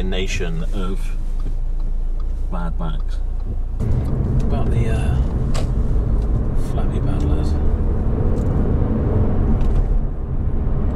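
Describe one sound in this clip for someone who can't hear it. A car's road noise rumbles steadily inside the cabin.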